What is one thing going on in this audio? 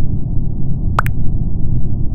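A short electronic blip sounds once.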